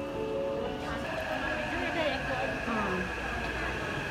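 A subway train rolls into the station and brakes with a falling whine.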